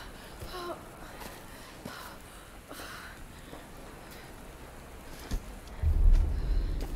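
Footsteps crunch on leaves and undergrowth.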